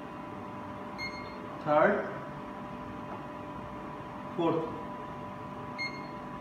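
An electronic device beeps briefly.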